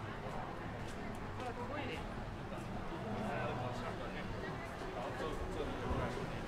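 People murmur as they pass by.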